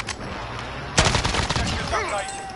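A rifle fires a burst of sharp shots.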